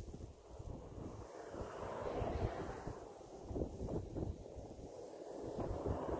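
A car drives slowly past through slushy snow.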